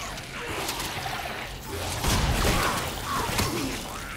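A creature snarls and shrieks close by.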